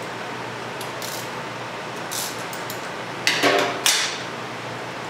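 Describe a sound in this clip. A metal tool clicks against a motorcycle chain adjuster.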